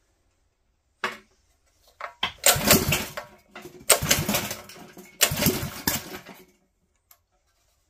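A small engine's pull starter rattles as it is yanked several times.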